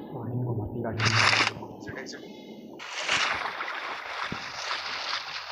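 Water splashes as a person swims.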